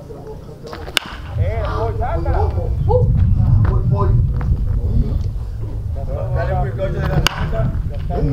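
A baseball bat cracks against a pitched ball.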